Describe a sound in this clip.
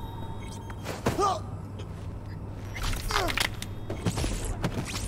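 A man grunts and struggles as he is grabbed in a chokehold.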